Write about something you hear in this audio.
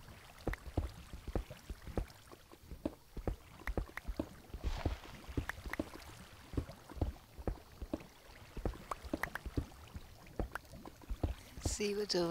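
Water flows and trickles nearby.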